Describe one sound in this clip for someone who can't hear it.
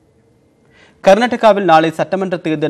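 A man speaks calmly and clearly into a microphone, reading out.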